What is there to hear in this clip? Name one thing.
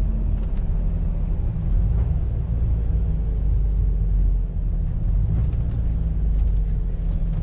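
Tyres hum on the road surface.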